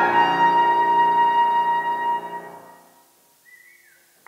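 A trumpet and piano play a final chord that rings out in an echoing hall.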